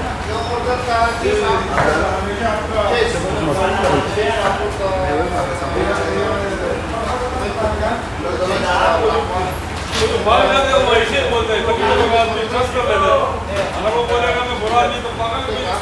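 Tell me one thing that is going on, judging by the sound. A knife chops through carrot against a cutting board with quick, light taps.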